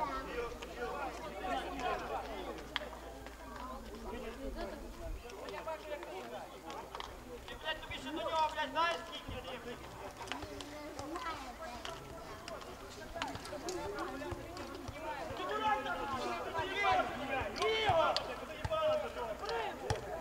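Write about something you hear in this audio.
Several men talk and call out outdoors.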